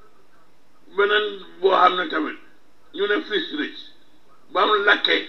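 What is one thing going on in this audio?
A man speaks into a microphone in short bursts.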